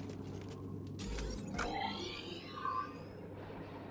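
Soft electronic chimes and whooshes sound as a menu opens.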